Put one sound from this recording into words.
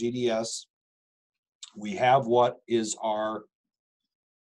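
A middle-aged man speaks calmly through a microphone in short bursts.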